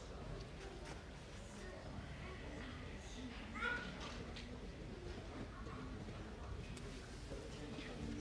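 A woman reads aloud into a microphone, heard through loudspeakers in an echoing hall.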